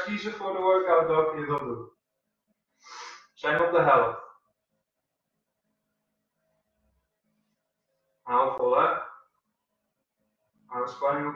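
A young man speaks calmly and clearly, in short phrases with pauses.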